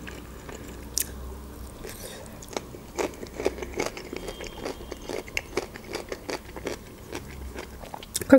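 A young woman chews crunchy food with wet, smacking sounds close to a microphone.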